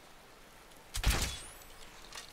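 A crossbow fires with a sharp snap.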